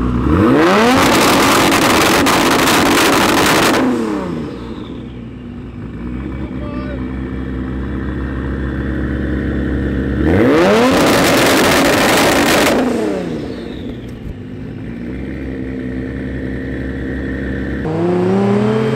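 A sports car engine idles with a deep rumble.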